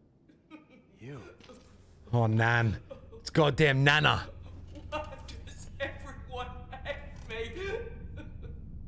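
An elderly woman speaks in a frail, shaky voice.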